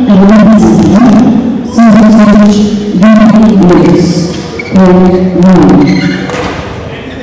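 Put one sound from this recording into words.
A young man shouts loudly across an echoing hall.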